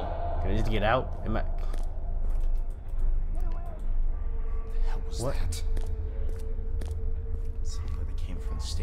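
A young man speaks close to a microphone with animation.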